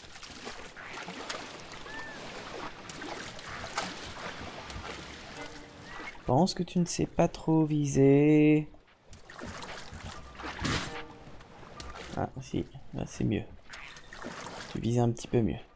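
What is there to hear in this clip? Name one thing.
Water splashes and rushes as a figure glides across it.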